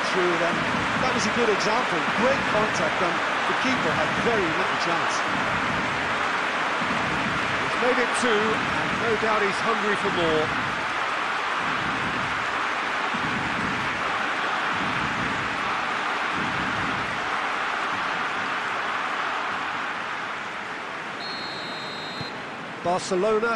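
A large crowd cheers and roars steadily in a stadium, slowly fading.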